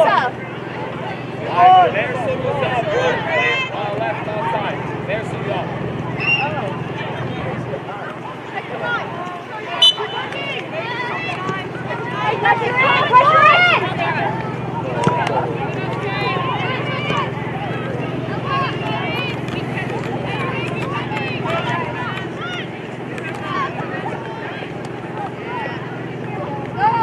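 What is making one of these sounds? Women and girls call out and cheer from the sidelines outdoors.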